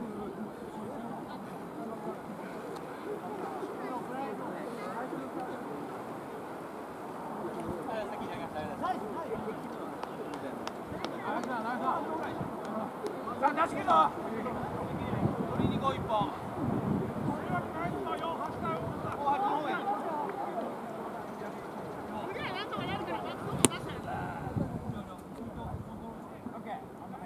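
Several men talk and call out nearby outdoors.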